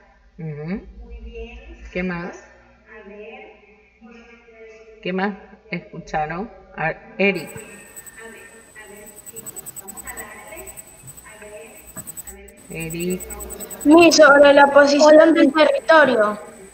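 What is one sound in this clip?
Children talk over an online call, their voices overlapping.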